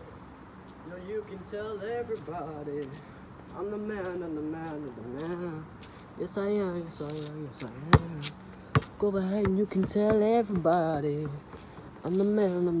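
A young man talks close by, casually.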